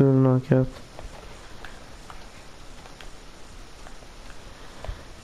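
Footsteps tread slowly across a hard, gritty floor.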